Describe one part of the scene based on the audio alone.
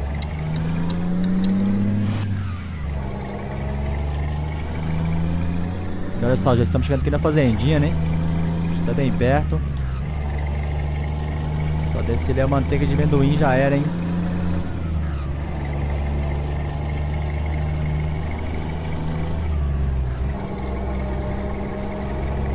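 A truck engine drones steadily, its pitch rising and dropping as gears change.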